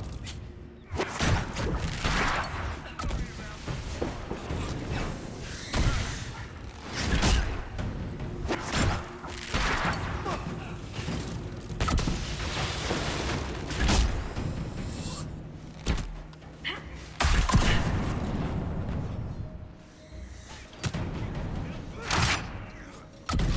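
Blows and explosions thud again and again.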